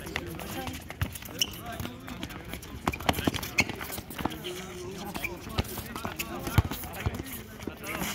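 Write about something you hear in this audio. A ball is kicked with sharp thuds on a hard court.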